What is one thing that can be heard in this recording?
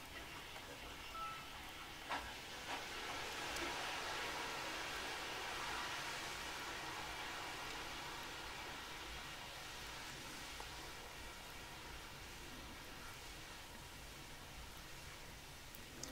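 A laptop fan whirs softly and then winds down.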